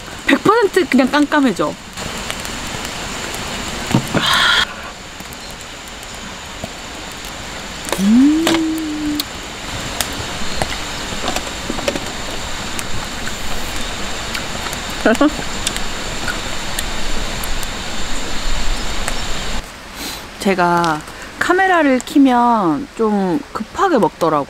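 A gas stove burner hisses steadily.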